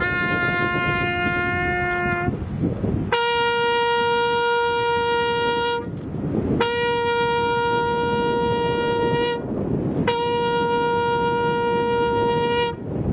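A bugle plays long, steady notes outdoors.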